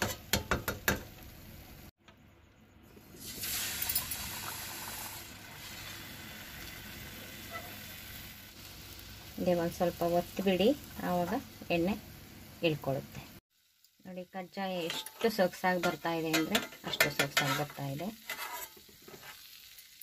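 A metal slotted spoon clinks against a metal pan.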